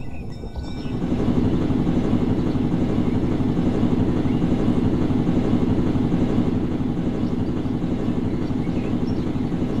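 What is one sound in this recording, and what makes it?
A helicopter's rotor whirs loudly and steadily.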